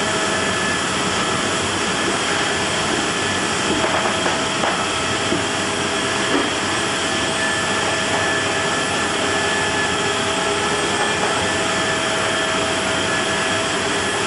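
Steel tracks clank and rattle over a metal ramp.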